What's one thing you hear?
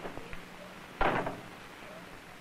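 A man speaks calmly nearby, heard through an old film soundtrack.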